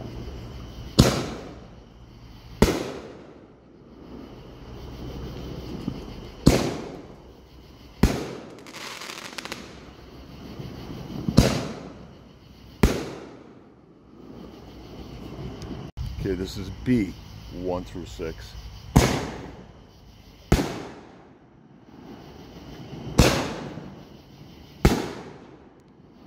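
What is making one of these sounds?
Fireworks burst with loud booming bangs that echo away, outdoors.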